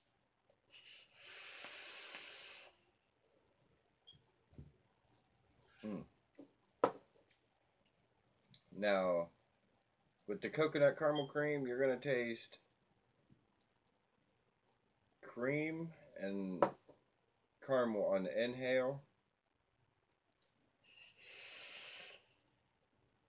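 A man draws a long hissing breath through a vape.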